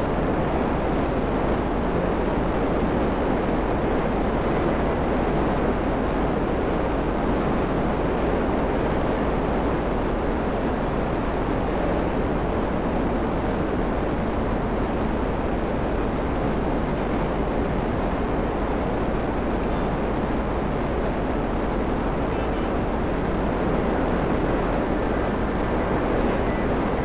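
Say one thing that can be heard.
A jet engine roars steadily as a jet flies low.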